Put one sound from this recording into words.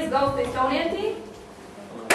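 A woman speaks aloud in a large room.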